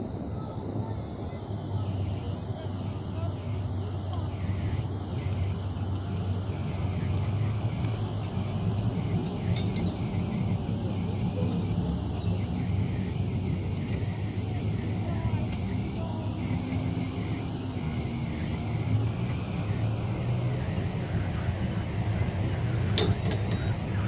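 Outboard motors on work boats drone under load.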